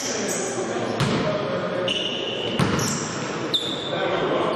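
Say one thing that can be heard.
A basketball bounces with hollow thuds in a large echoing hall.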